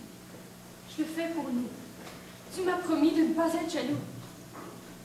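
A young woman sings through a microphone.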